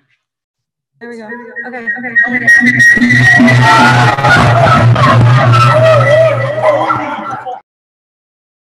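Children shout and cheer loudly in a room, heard over an online call.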